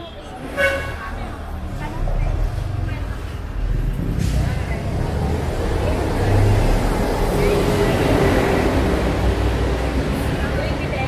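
A young woman speaks casually nearby.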